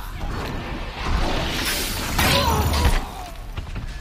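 Metal clashes and thuds ring out during a fight.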